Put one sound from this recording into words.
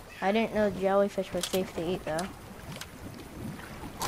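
A fishing line whips out and lands in water with a splash.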